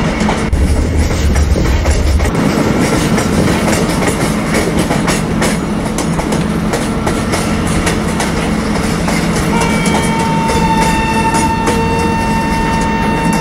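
Train wheels rumble and clack over rail joints.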